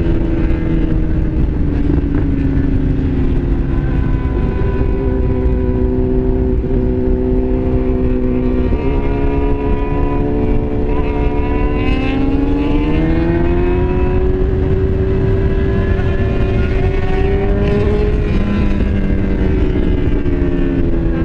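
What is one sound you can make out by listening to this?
A motorcycle engine hums steadily and rises and falls in pitch as the rider speeds up and slows.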